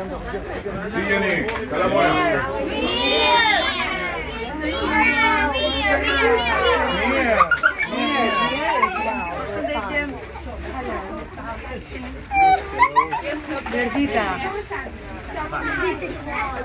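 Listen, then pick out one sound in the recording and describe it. Children shout and cheer excitedly.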